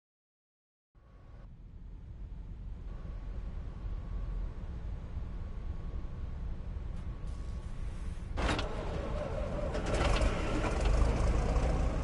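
A tank engine idles with a low, steady rumble.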